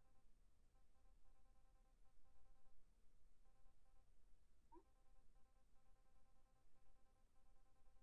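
Short electronic beeps chirp rapidly as game text prints out.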